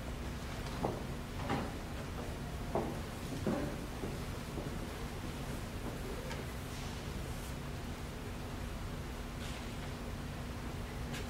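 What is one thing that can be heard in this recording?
A woman speaks into a microphone over loudspeakers in a large hall.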